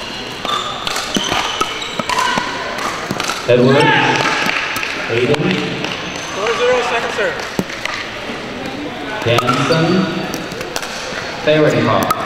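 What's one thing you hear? Paddles hit a plastic ball back and forth with sharp pops in an echoing hall.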